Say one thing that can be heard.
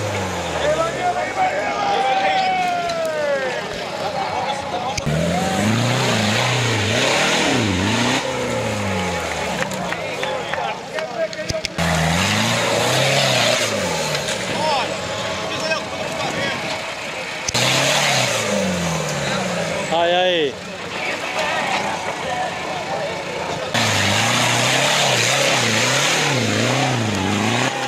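An off-road vehicle's engine revs hard and roars.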